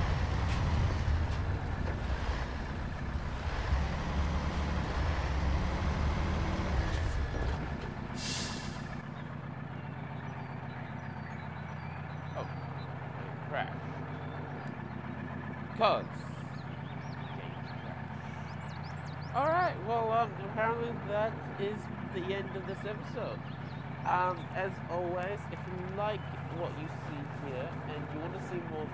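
A heavy truck engine rumbles steadily, louder at first and then settling to a lower drone.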